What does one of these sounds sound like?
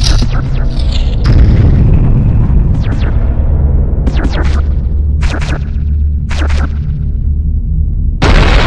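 Game music plays with a steady low drone.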